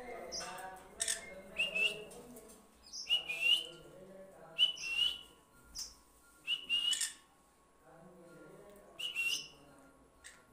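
A parrot gives short, sharp squawks close by.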